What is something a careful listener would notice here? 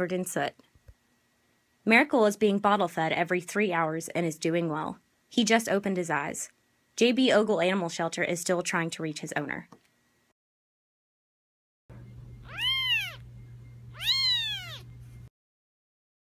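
A tiny kitten mews up close.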